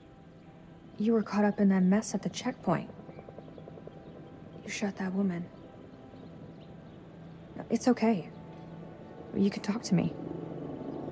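A young woman speaks softly and gently, close by.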